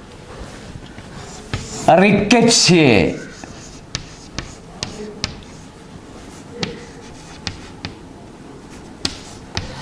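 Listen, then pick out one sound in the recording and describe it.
Chalk taps and scratches on a blackboard.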